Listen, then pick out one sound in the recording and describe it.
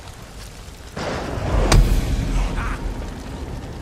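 A fire bursts with a deep rumbling roar.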